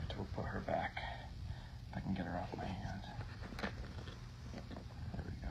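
Fingers scrape and rustle against rough rock close by.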